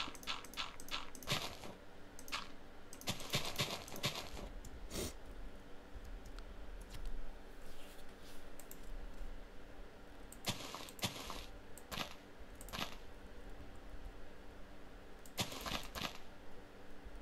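Game blocks thud as they are broken and placed.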